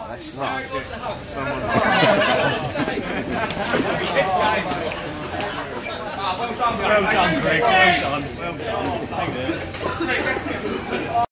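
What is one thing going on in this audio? Several men talk and shout excitedly nearby.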